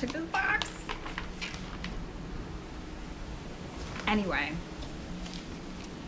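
Sheets of paper rustle in a woman's hands.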